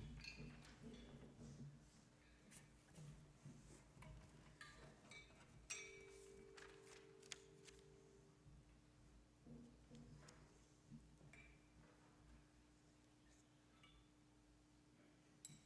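Handbells ring softly in a large echoing hall.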